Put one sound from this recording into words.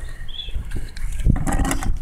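A hand trowel scrapes across wet concrete.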